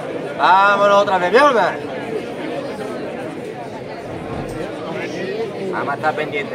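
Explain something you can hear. A man speaks close by.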